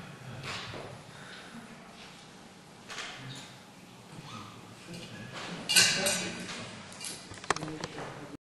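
A man speaks calmly into a microphone in a room with some echo.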